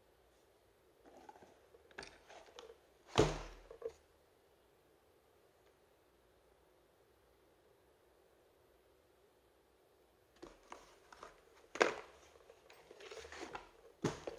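Cardboard rustles as a box is handled.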